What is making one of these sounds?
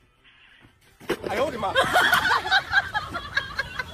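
A man falls heavily onto soft soil with a thud.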